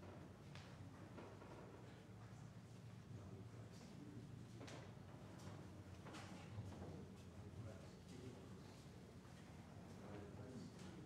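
Footsteps shuffle softly across a carpeted floor.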